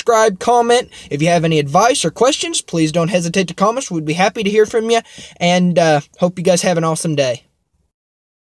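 A young man talks casually and closely into a microphone.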